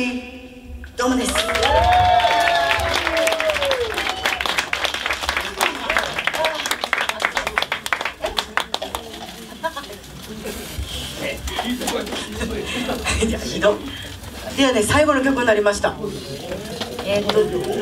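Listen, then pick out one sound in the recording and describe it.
A young woman sings loudly through a microphone.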